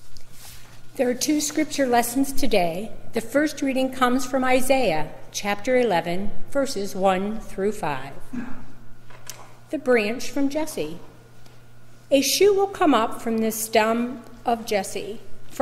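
A middle-aged woman speaks calmly into a microphone in an echoing hall.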